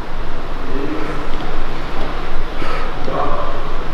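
A woman breathes out hard in short bursts.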